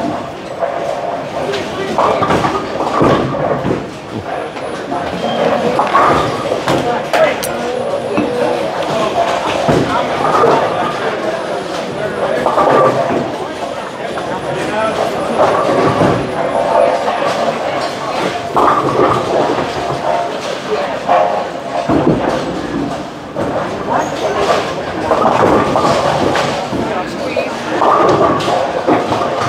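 Pins crash and clatter as balls strike them.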